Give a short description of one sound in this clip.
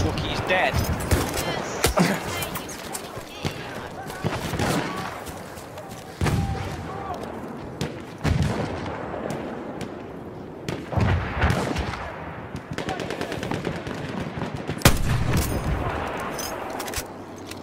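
A Martini-Henry rifle's action clacks as it is reloaded.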